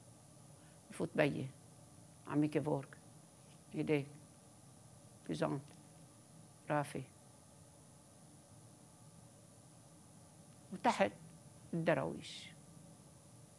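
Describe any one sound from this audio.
An elderly woman speaks slowly and calmly into a microphone, with long pauses.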